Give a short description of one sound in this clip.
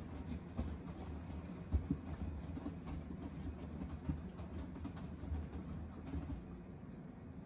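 Wet laundry tumbles and thumps inside a washing machine drum.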